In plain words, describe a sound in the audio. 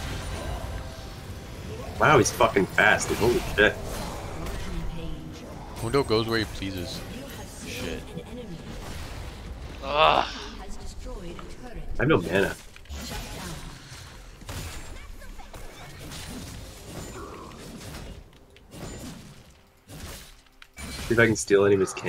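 Game spell effects burst and clash during a fight.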